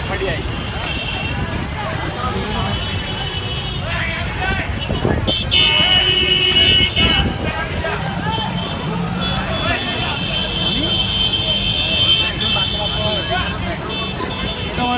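A crowd of men talks and shouts excitedly nearby.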